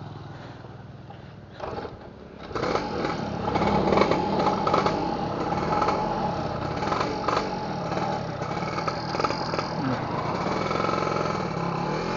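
A scooter engine idles quietly, then grows louder as the scooter rides off.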